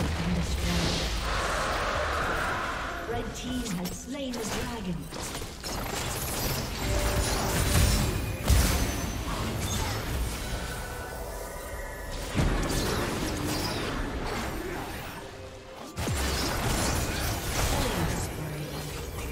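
Video game spell effects whoosh, crackle and clash during a fight.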